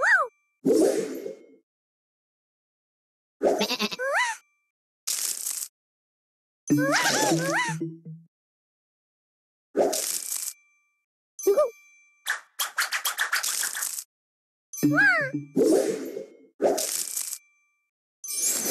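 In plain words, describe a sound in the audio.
Cheerful chimes and pops from a puzzle game sound in short bursts.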